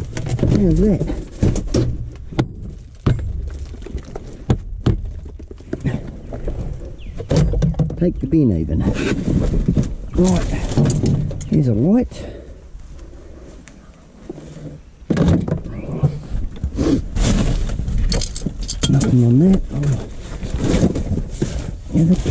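Scrap metal and rubbish clatter and bang into a metal bin.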